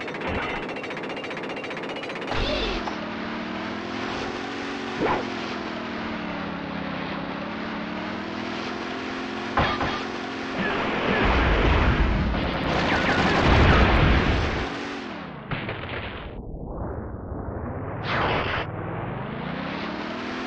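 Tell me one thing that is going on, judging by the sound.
A boat engine drones steadily, rising and falling in pitch.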